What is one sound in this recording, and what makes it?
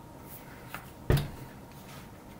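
A plastic glue bottle is set down with a thud.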